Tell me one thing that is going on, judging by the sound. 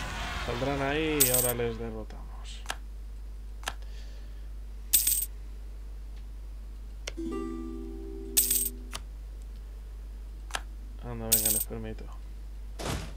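Short musical chimes ring out now and then.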